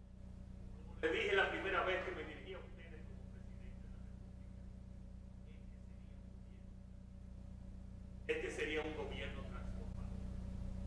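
A middle-aged man speaks formally into a microphone, heard over loudspeakers in a large hall.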